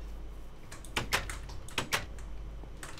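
A wooden door opens and shuts in a game.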